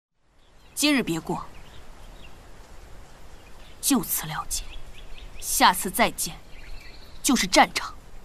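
A young woman speaks coldly and firmly, close by.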